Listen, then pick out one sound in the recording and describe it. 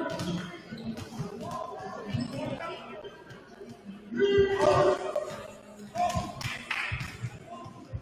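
Basketballs bounce on a wooden floor in a large echoing hall.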